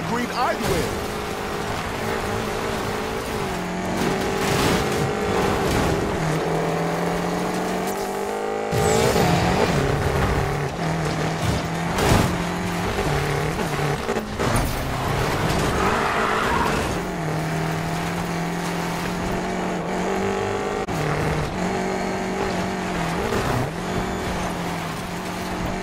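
Tyres skid and slide on dirt.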